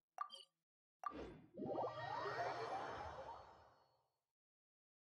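A shimmering whoosh swells and fades.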